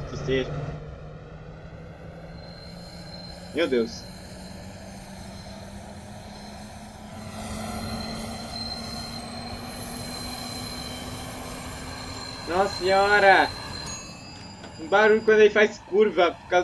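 An electric train hums steadily as it runs along the track.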